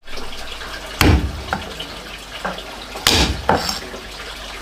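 A heavy cleaver chops down hard on a wooden block.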